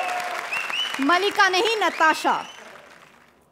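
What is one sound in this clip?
A young woman sings loudly.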